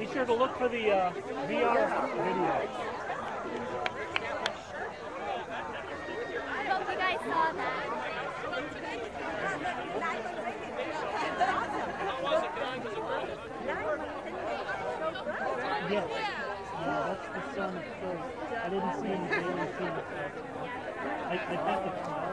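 A crowd of men, women and children chatters all around outdoors.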